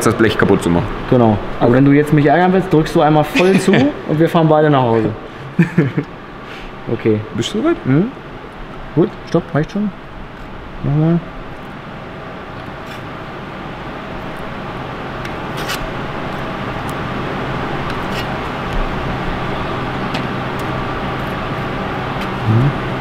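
A metal hand tool clicks and clanks.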